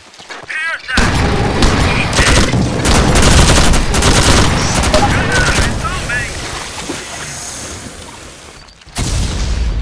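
Automatic guns fire in rapid, loud bursts.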